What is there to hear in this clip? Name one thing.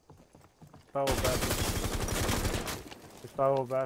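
A rifle fires rapid bursts.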